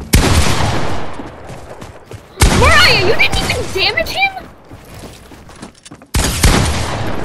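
Shotgun blasts boom loudly.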